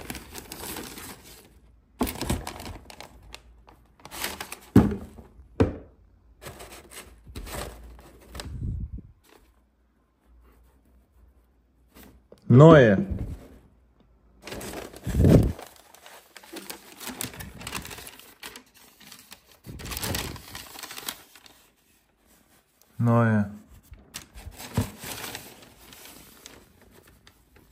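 Tissue paper rustles and crinkles close by.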